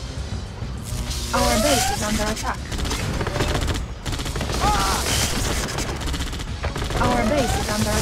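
Electronic battle sound effects from a strategy game play with rumbling and whooshing noises.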